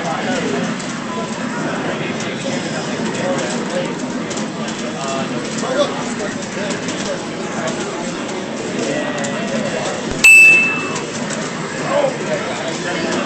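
Fighting game sound effects and music play from a television speaker.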